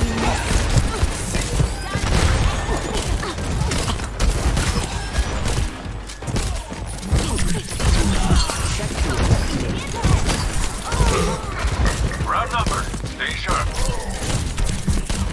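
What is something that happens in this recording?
A beam weapon hums and crackles as it fires in bursts.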